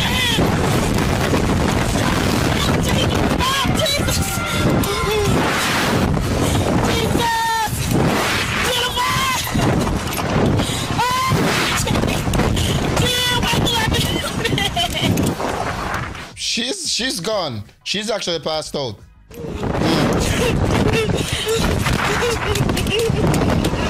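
Young women scream loudly on a fast-moving ride.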